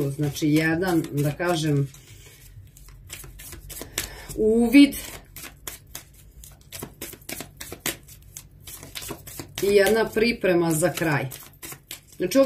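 Playing cards riffle and slap together as they are shuffled.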